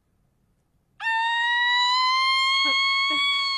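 A young woman cries out in a long, high, steady wail.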